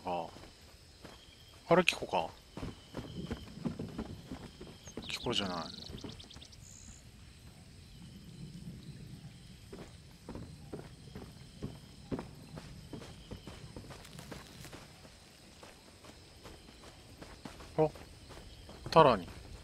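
Footsteps rustle through grass at a steady pace.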